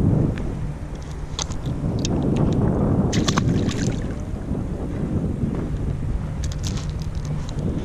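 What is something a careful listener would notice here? Plastic gear clicks and rattles inside a kayak.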